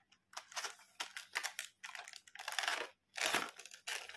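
A plastic case snaps shut.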